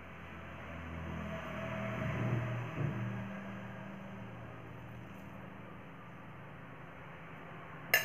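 A metal spoon scrapes against a steel bowl.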